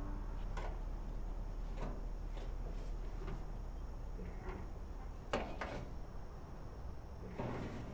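Metal clicks and clanks as a man works on a car.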